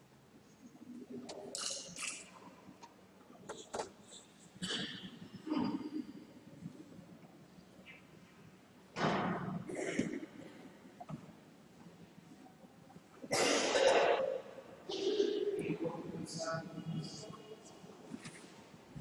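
A man speaks quietly through a microphone in a large echoing hall.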